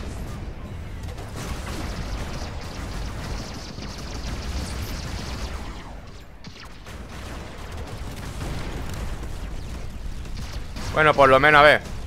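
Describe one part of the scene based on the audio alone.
Laser weapons fire in rapid bursts with rumbling blasts.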